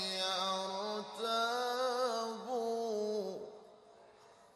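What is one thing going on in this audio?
A man chants in a long, wavering melodic voice through a microphone and loudspeakers.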